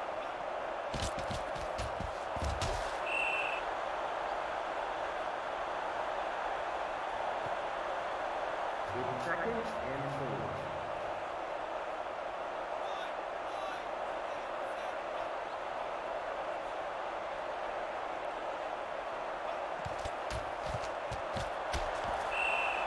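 Football players thud and clatter as they collide in tackles.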